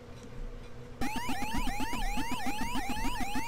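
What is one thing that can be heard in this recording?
An arcade game chomps in quick, regular blips.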